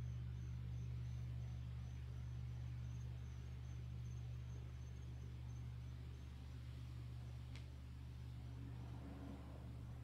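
A large gong rings with a deep, steady hum.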